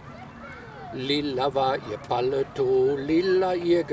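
An elderly man sings loudly close by.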